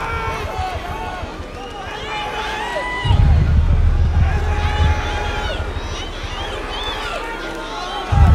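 A crowd of men sings and chants loudly together.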